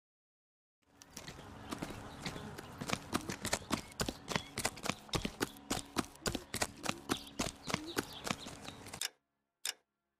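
Quick footsteps run across dry ground.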